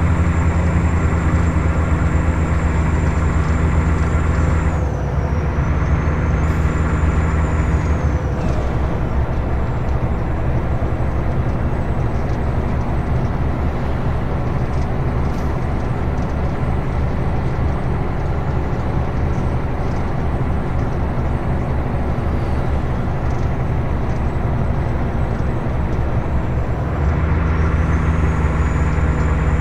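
A truck's diesel engine drones steadily.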